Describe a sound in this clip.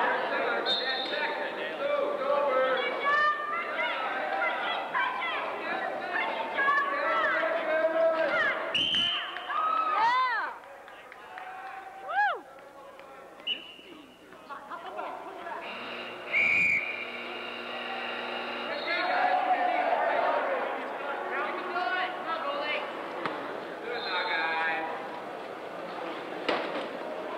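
Wheelchair tyres squeak on a hard floor.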